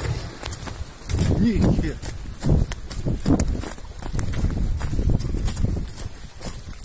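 Clumps of mud thud and spatter close by.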